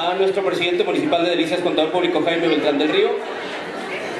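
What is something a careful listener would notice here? A man speaks into a microphone over loudspeakers, with animation, in an echoing hall.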